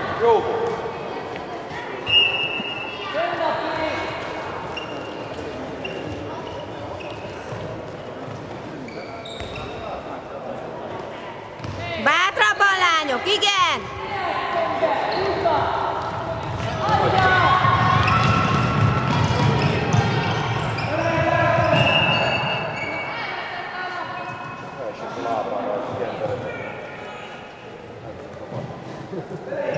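A handball bounces on the court.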